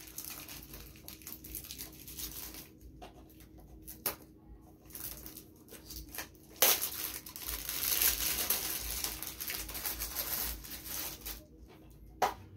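Plastic packaging crinkles and rustles as it is unwrapped.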